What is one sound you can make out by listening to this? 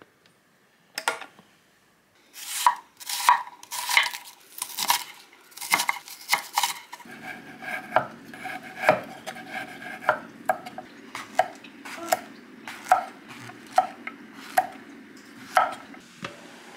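A knife chops through vegetables onto a wooden board with sharp knocks.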